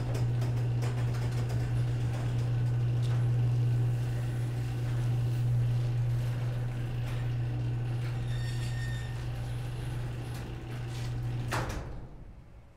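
A garage door opener motor hums steadily as the door rolls up.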